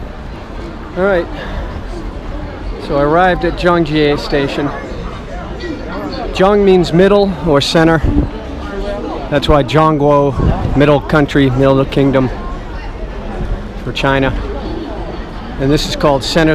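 A crowd of people bustles in the street.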